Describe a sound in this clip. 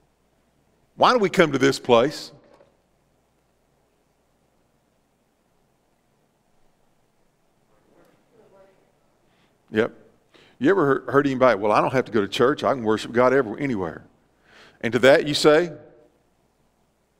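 A middle-aged man speaks calmly through a microphone in a large echoing hall, pausing between phrases.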